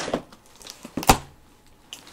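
A box thumps down on a hard surface.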